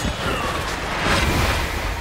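A magic blast bursts with a whoosh.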